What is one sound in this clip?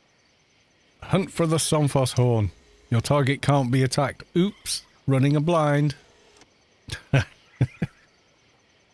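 An older man talks with animation into a close microphone.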